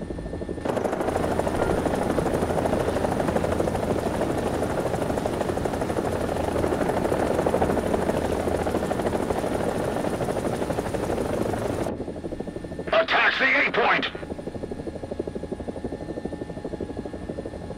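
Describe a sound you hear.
A helicopter's rotor thumps steadily and loudly, then suddenly goes quieter.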